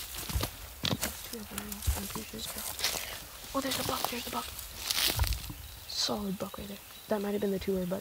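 A man speaks quietly in a low voice, close by.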